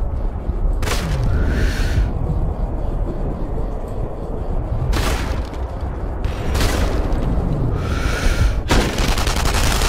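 Rifle shots ring out sharply, followed by a short echo.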